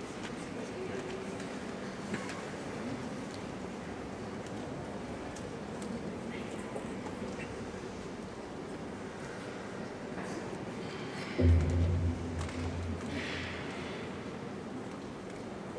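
A choir sings softly in a large echoing hall.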